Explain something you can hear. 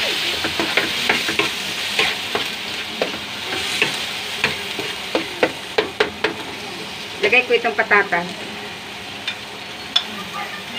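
Food sizzles in a hot frying pan.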